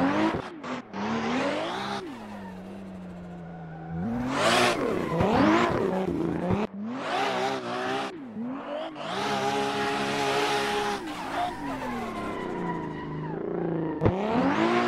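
Tyres screech as the car slides sideways.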